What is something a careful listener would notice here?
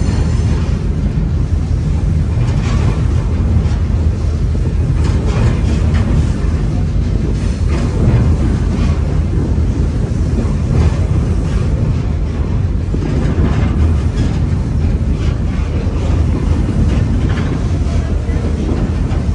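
Wind rumbles hard against a microphone outdoors.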